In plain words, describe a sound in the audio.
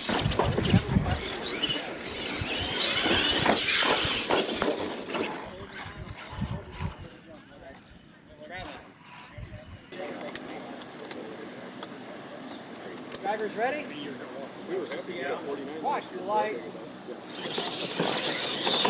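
Electric motors of small model trucks whine loudly as the trucks race over dirt.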